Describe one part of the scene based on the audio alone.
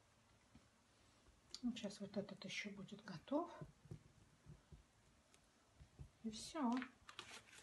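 Paper crinkles close by.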